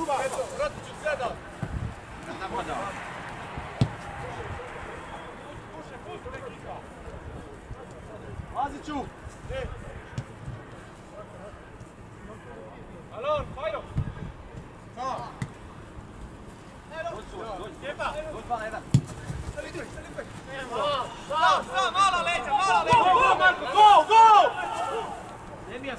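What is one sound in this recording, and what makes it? Young men shout to one another across an open outdoor field.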